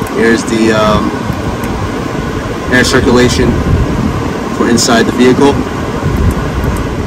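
A finger presses a button on a car's climate panel with a soft click.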